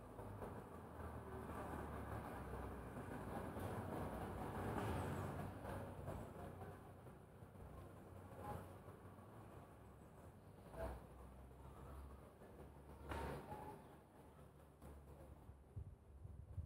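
Wind rustles the leaves of trees outdoors.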